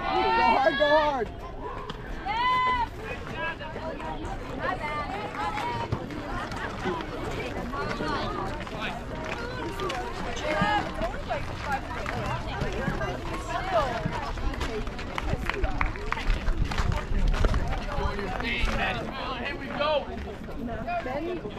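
Spectators cheer and call out loudly outdoors.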